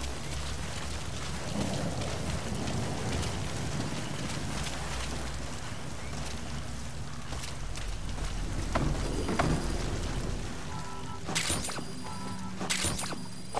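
Footsteps crunch quickly over gravel and dirt.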